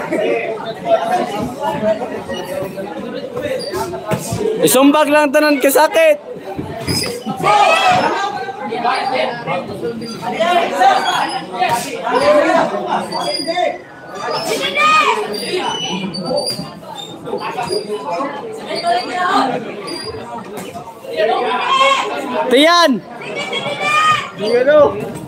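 Young spectators shout and cheer from ringside.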